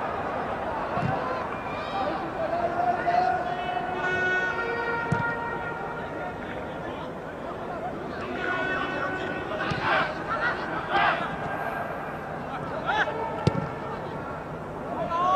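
A crowd murmurs steadily across a large open stadium.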